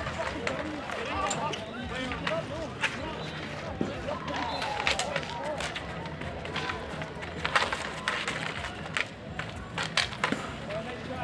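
Spectators talk and call out in the open air.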